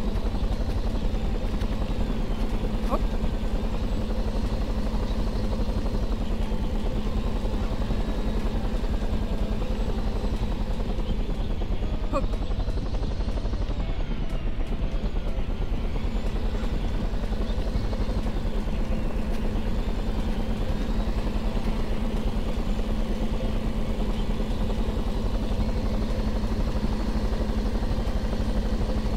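A cart's motor hums as it drives.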